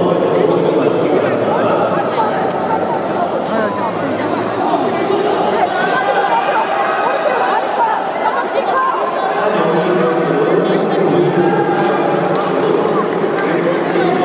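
A crowd of people talks and calls out in a large echoing hall.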